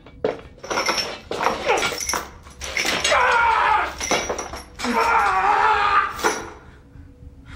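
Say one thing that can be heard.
A metal chain rattles and clanks.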